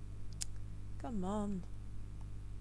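A young woman makes a short vocal sound close to a microphone.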